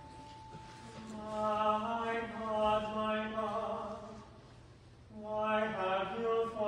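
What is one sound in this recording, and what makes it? A choir of men and women sings together in a reverberant hall.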